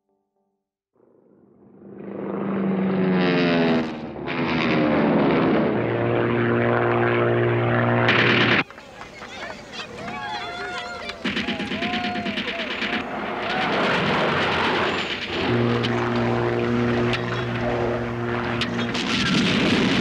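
Propeller plane engines roar low overhead.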